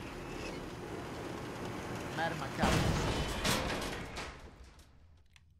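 A metal gate rattles and slides open.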